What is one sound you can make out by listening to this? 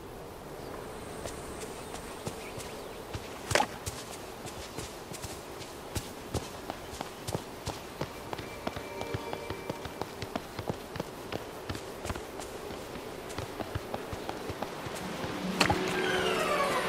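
Quick footsteps patter on grass and paving.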